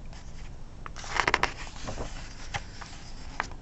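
A paper page is turned with a soft rustle.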